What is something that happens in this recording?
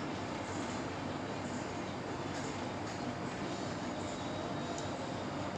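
An air conditioner unit hums steadily nearby.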